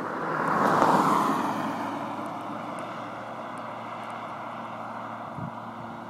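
A car drives past on a road and its tyre noise fades into the distance.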